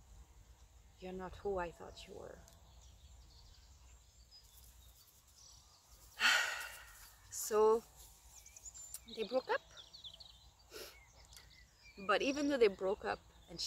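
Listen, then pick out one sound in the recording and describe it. A young woman speaks calmly and softly close by, with pauses.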